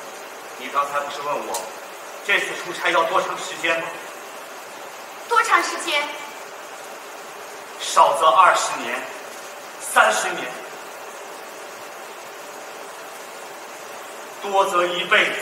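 A man speaks clearly from a stage.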